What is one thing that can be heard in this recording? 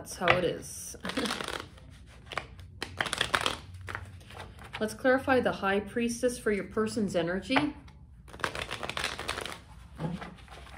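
Cards shuffle and riffle in hands.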